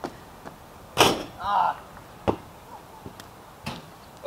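A basketball bangs against a hoop's backboard and rim.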